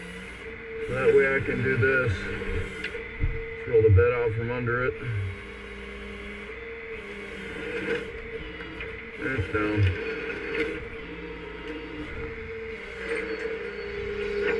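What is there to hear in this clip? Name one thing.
A hydraulic pump whines steadily.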